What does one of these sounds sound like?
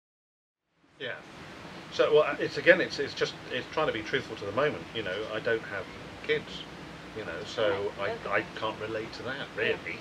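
A middle-aged man speaks calmly and thoughtfully.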